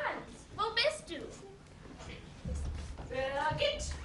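A young woman speaks loudly and expressively.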